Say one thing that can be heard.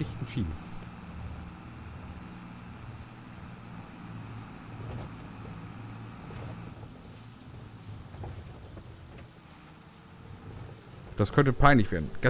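A tractor engine hums steadily at low pitch.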